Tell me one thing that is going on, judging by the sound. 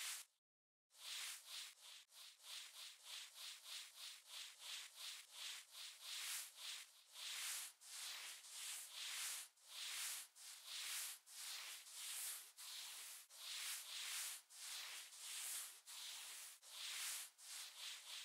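A soft brush scrubs in quick, repeated swishing strokes.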